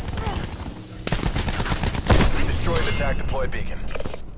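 Gunshots fire rapidly nearby.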